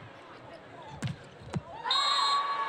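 A volleyball is struck hard with a sharp smack.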